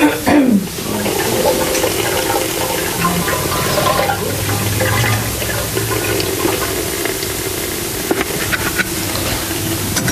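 A machine hums and churns steadily.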